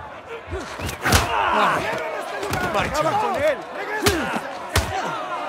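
A crowd of men shouts and jeers nearby.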